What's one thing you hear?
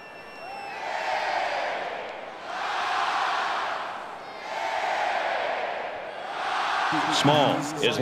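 A large crowd roars in swelling waves.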